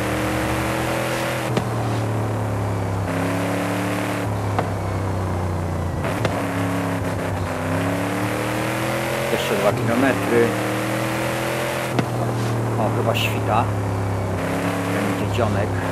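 A powerful engine roars steadily, with its pitch dropping at each gear change.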